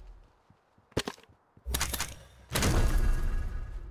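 Short game pickup chimes sound.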